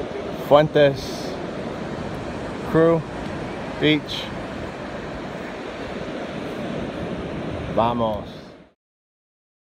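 Surf washes steadily on a beach.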